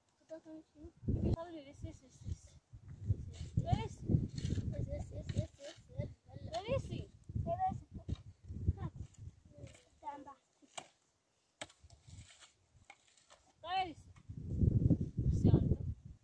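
A woman scrapes soil with a shovel.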